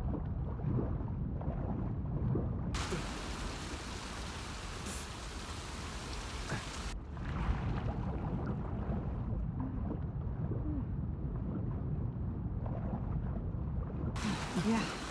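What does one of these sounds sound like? A low, muffled rumble of water sounds underwater.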